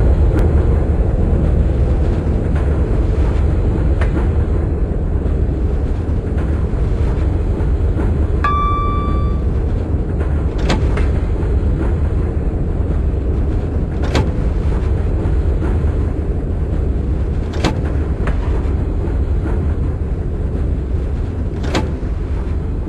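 Train wheels click now and then over rail joints.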